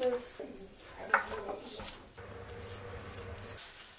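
Diced vegetables tumble into a pot.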